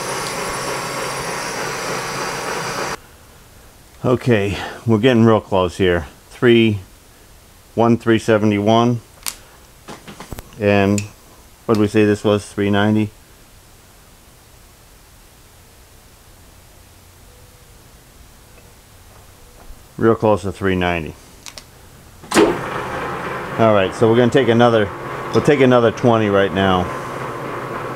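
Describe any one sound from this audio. A metal lathe runs with a steady whirring hum.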